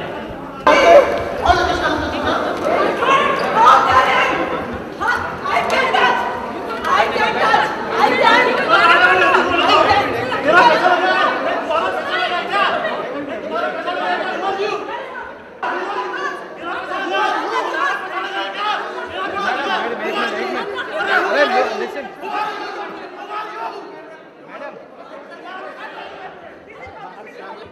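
Two women argue loudly, shouting at each other up close.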